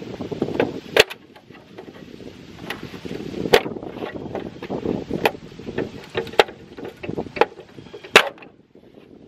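A plastic wheel cover clicks and snaps as it is pried off.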